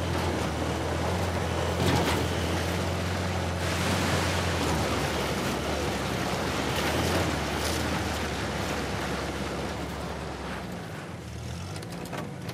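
A jeep engine rumbles steadily as it drives off-road.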